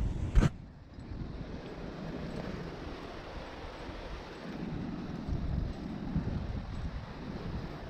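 Metal climbing gear clinks faintly.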